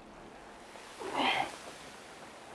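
A man speaks a few words calmly, close by.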